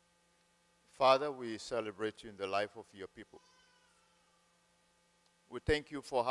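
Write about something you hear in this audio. A man speaks into a microphone over a loudspeaker, in a hall with some echo.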